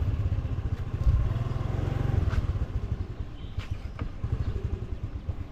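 A scooter engine putters at low speed.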